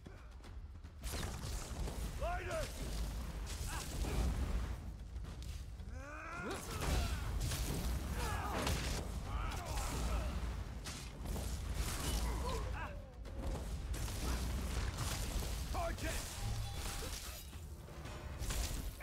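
Magic blasts and crackles boom in a fight.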